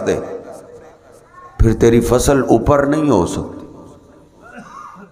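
A man speaks into a microphone in a slow, chanting voice.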